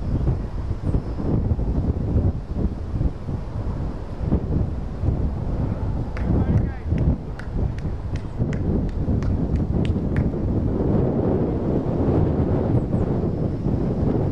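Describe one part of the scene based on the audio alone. Wind gusts across the microphone outdoors.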